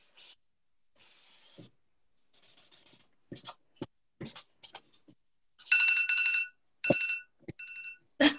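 A felt-tip marker scratches and squeaks across paper close by.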